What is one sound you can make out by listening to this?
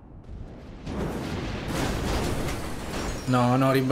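A car crashes and tumbles with a loud metallic bang.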